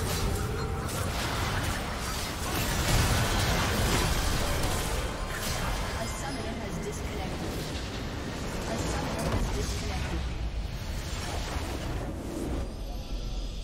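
Video game spell blasts and explosions crash in a frantic battle.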